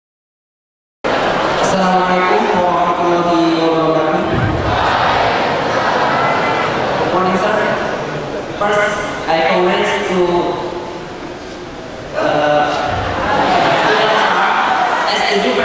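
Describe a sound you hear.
A young man speaks into a microphone, heard through loudspeakers in a large echoing hall.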